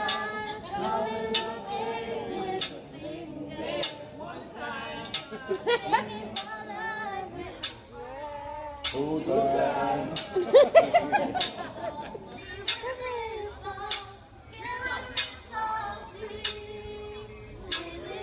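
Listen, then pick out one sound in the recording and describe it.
A man sings in a lively voice.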